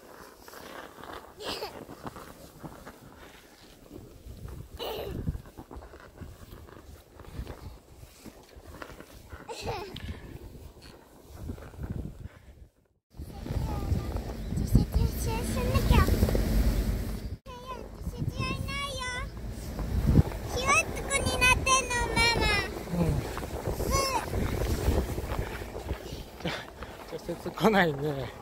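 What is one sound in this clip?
A sled scrapes and hisses over snow.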